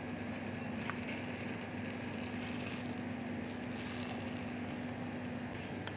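Metal tongs clink and scrape against a wok as noodles are tossed.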